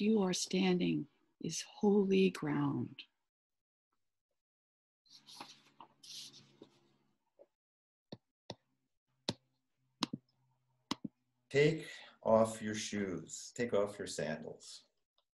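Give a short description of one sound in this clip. A middle-aged woman speaks calmly and close, heard through an online call.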